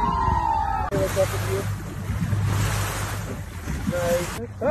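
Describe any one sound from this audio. Water rushes past the side of a moving boat.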